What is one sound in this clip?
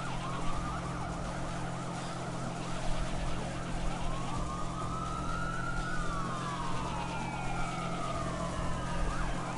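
Water splashes and sprays against a speeding boat's hull.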